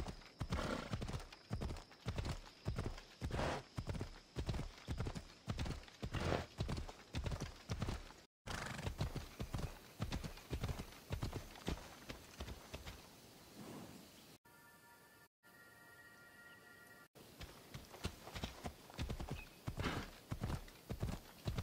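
A horse gallops with quick, steady hoofbeats on a dirt path.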